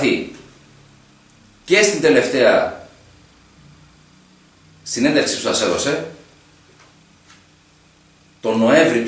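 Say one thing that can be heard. A man speaks calmly into a nearby microphone, in short phrases with pauses.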